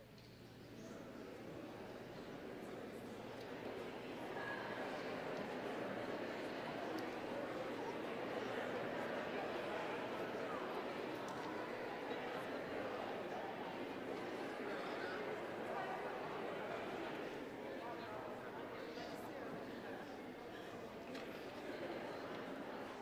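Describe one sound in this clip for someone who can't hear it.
A crowd of people chat and greet each other in a large echoing hall.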